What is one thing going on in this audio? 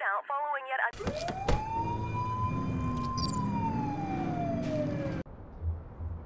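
A police siren wails and slowly falls in pitch.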